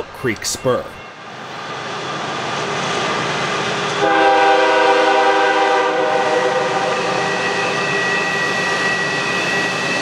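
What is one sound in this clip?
A diesel locomotive approaches, its engine growing louder.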